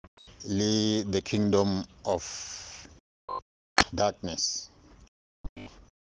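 A man speaks close to the microphone in short bursts.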